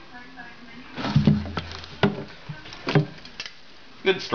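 A snake strikes suddenly and thrashes about, thumping and rustling on loose wood chips.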